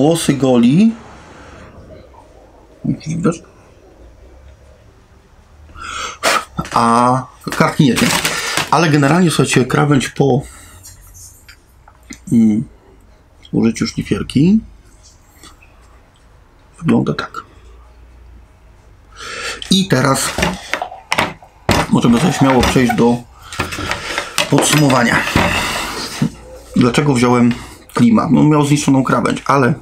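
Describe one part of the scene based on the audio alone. A man talks calmly close by, in short bursts with pauses.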